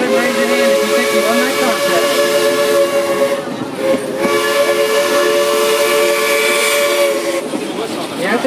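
Train wheels squeal steadily as the train rounds a curve.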